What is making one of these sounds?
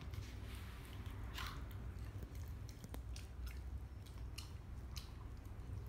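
A dog eats wet food from a metal bowl.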